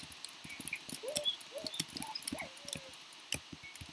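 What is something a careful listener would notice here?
A pig grunts and squeals.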